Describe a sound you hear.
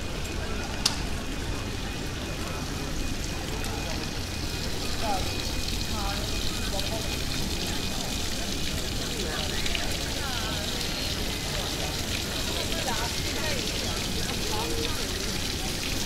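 Water splashes gently in a fountain.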